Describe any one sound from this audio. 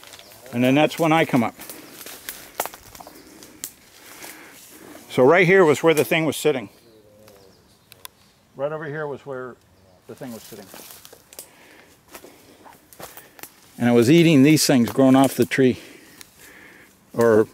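Footsteps rustle and crunch through dry undergrowth.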